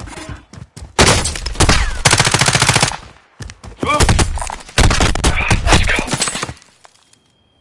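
Rapid gunfire cracks in loud bursts.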